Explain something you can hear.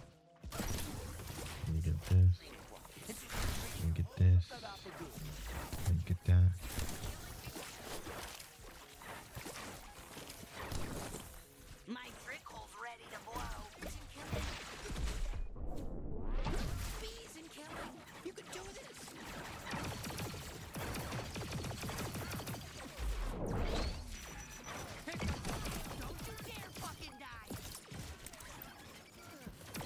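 Game guns fire rapid bursts of blaster shots.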